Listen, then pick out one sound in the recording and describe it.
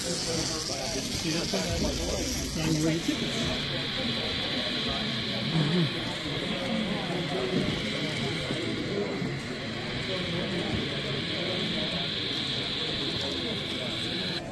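An N-scale model locomotive hums along a metal track.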